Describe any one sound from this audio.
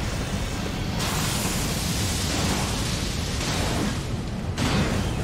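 Lightning crackles and booms in bursts.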